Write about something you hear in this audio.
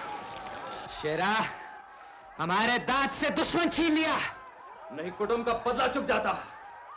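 A man laughs and shouts loudly, close by.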